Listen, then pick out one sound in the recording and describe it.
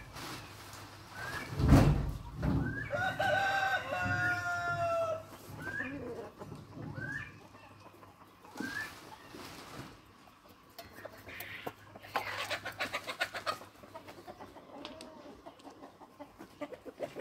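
Hens cluck and squawk outdoors.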